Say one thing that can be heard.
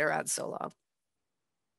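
A young woman speaks briefly through a headset microphone on an online call.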